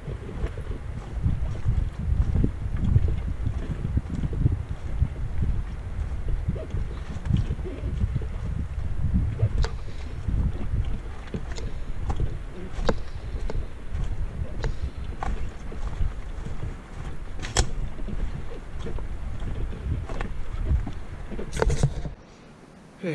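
Footsteps crunch and thud on a dirt trail outdoors.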